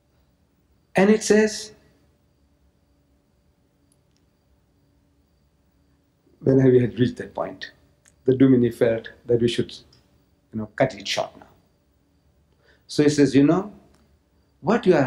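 An elderly man speaks slowly into a microphone, with long pauses.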